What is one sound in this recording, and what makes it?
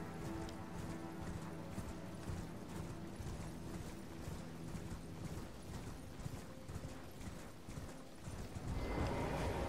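A horse gallops with rapid thudding hoofbeats.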